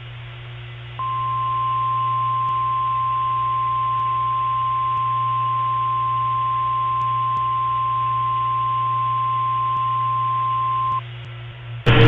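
A radio emits a long, steady high-pitched alert tone through a small speaker.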